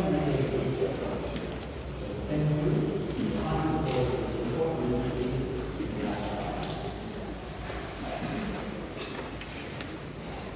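A man speaks calmly through loudspeakers in a large echoing hall.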